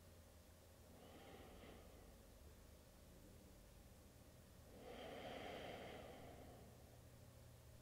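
A woman breathes out slowly and deeply nearby.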